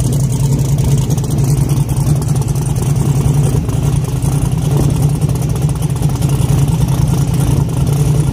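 A race car engine rumbles loudly at a steady idle.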